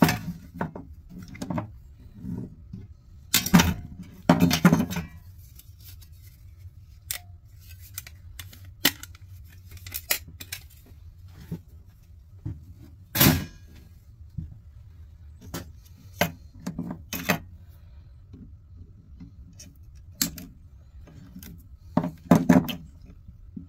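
Metal parts clatter and clink.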